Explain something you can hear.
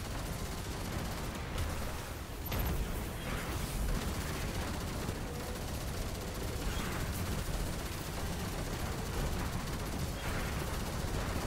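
Rapid gunfire blasts and booms without a break.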